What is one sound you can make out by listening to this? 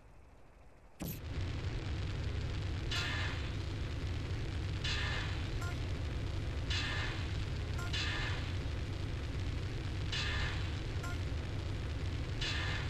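A flamethrower roars steadily.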